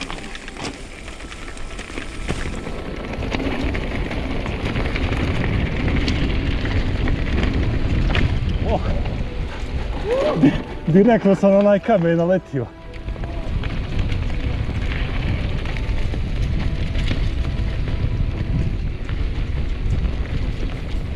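Bicycle tyres crunch and rattle over a rough gravel track.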